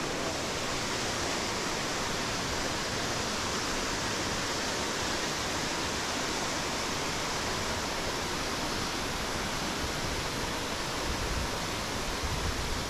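A stream rushes steadily over rocks nearby.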